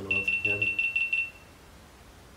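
An electric device crackles with a rapid, sharp, high buzzing and then cuts off.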